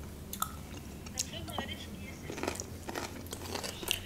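A young woman chews food with wet, crunchy sounds.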